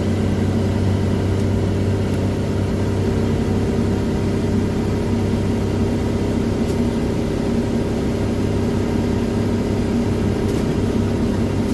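A small car engine drones steadily at speed.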